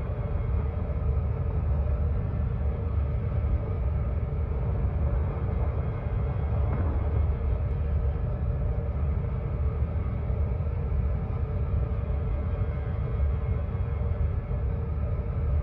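A spaceship engine hums with a deep, steady rumble.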